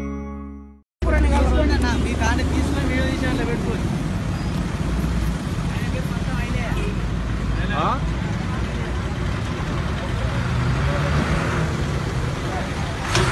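Traffic hums steadily on a road outdoors.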